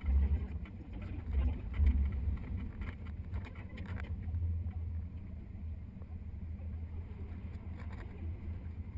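A vehicle's engine rumbles steadily.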